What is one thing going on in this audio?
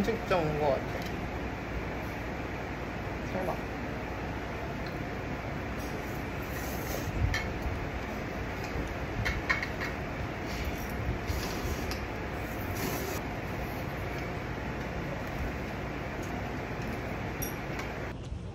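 A metal lid clinks against a metal pot.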